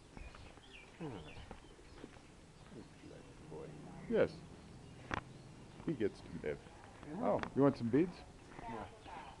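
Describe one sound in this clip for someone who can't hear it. A man speaks close by in short phrases.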